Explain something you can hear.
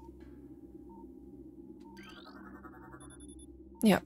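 An electronic scanning tone beeps and chirps.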